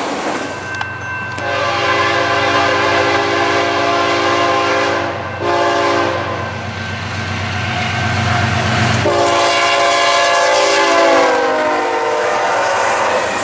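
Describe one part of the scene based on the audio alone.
A train horn blares loudly in long blasts.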